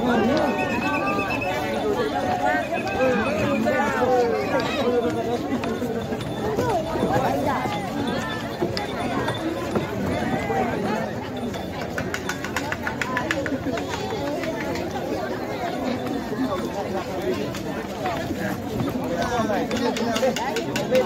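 A large crowd of men and women talks and shouts close by outdoors.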